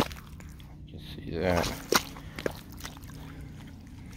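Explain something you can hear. Footsteps squelch in wet mud.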